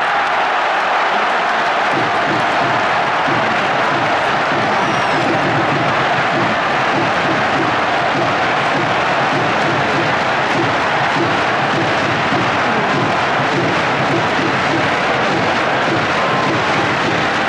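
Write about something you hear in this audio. A large crowd claps in a steady rhythm.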